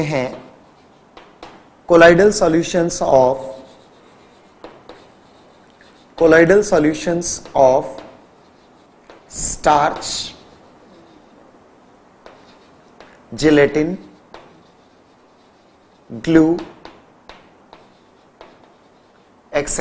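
Chalk taps and scratches on a board.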